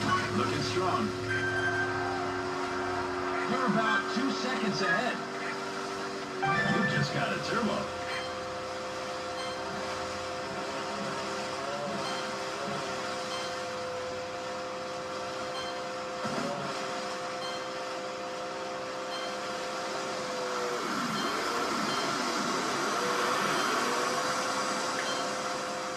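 A jet ski engine whines as it races over water.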